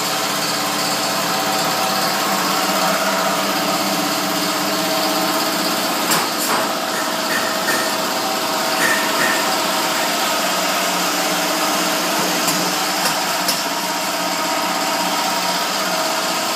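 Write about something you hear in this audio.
A filling machine hums and hisses steadily.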